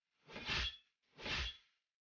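A magic blast bursts with a crackling whoosh.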